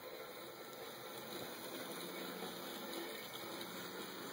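A model train hums and clicks softly along its track.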